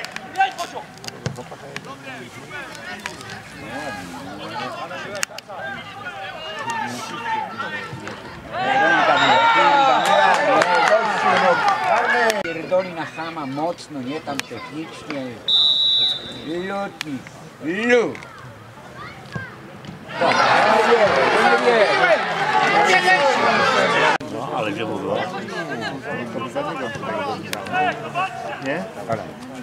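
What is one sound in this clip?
Men chat and call out nearby, outdoors.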